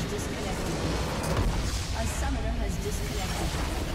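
A structure explodes with a loud boom.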